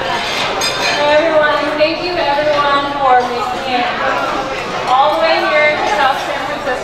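A young woman speaks into a microphone over loudspeakers in a large hall.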